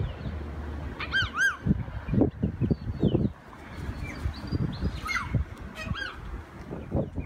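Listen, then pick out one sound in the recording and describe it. Macaws squawk harshly.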